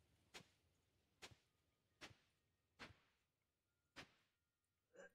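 Short tool strikes thud against soil at a steady pace.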